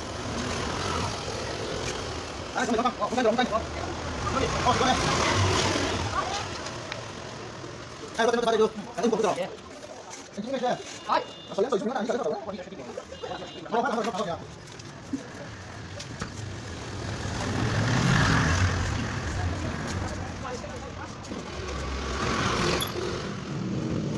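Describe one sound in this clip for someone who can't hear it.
A trowel scrapes wet cement.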